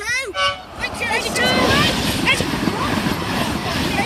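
A train rushes past close by with a loud roar.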